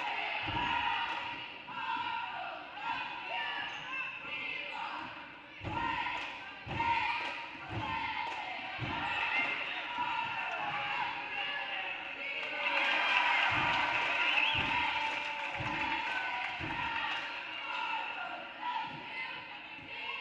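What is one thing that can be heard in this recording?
A basketball bounces repeatedly on a hard wooden floor in a large echoing gym.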